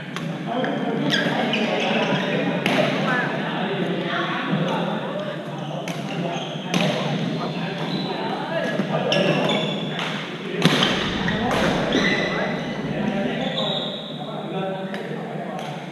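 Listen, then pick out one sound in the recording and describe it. Shuttlecocks are struck with rackets in sharp pops, over and over.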